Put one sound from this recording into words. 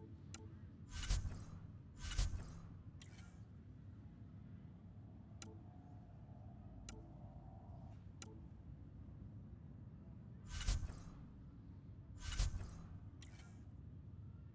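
Whooshing swells sound as game menu pages switch.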